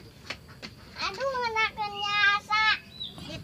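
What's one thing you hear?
A young girl speaks in a high, lively voice close by.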